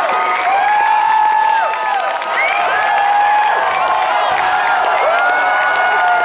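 Many people clap their hands.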